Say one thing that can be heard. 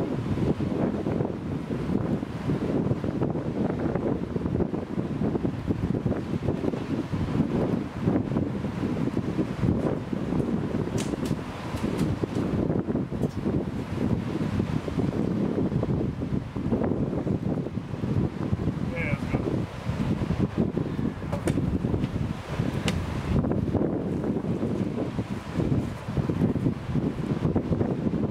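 Choppy water laps below, outdoors in wind.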